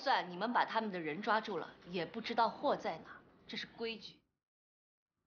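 A young woman speaks firmly and calmly, close by.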